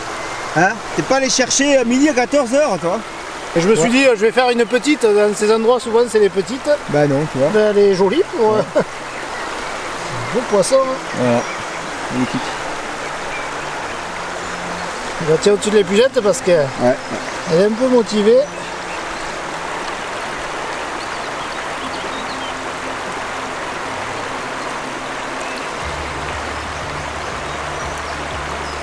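A river flows and rushes steadily.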